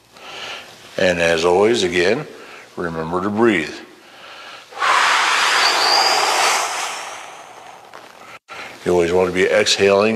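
A man speaks calmly in an echoing hallway.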